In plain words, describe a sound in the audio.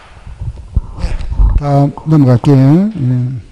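A middle-aged man speaks into a handheld microphone, his voice drawn out and rising and falling.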